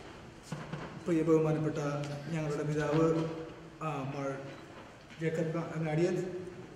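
A young man speaks through a microphone in an echoing hall.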